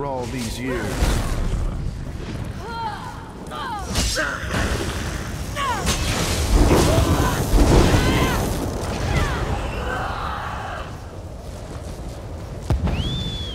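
Heavy metal blows clang in a fight.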